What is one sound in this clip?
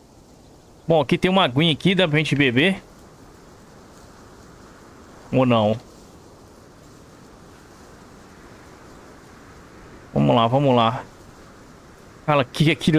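A man talks in short bursts close to a headset microphone.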